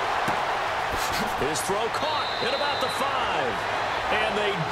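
Football pads thud together in a tackle.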